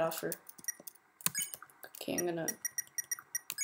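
Short electronic blips sound as menu choices are made.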